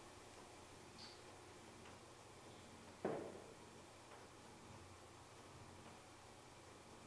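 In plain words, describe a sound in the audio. A woman reads aloud quietly through a microphone.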